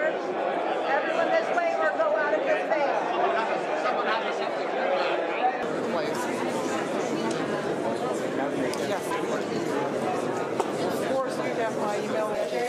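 Several men talk to each other nearby in a murmur of conversation.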